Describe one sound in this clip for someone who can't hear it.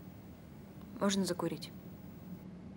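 A young woman asks a short question calmly.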